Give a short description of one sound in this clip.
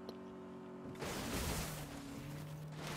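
A car crashes with a loud crunch of metal.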